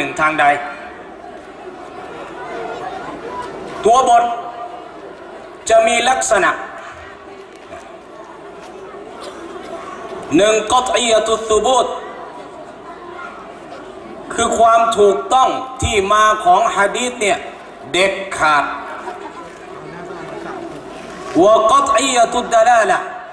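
A middle-aged man speaks into a microphone in bursts, with pauses, heard through a loudspeaker.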